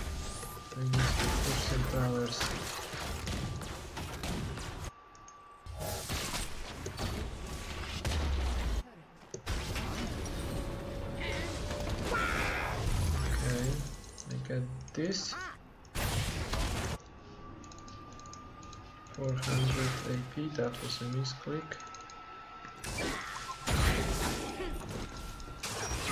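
Game effects of spells and blows crackle and boom.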